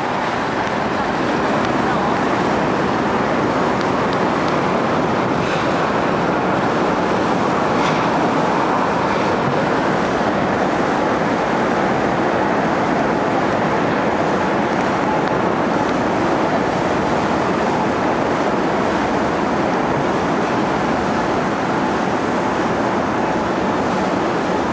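Wind blows steadily across open water.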